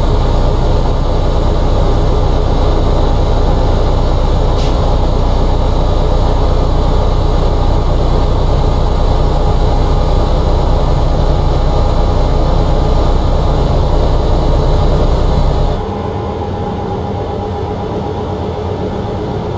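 A truck engine drones steadily and drops lower in level partway through.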